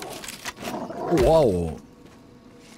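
A wolf snarls close by.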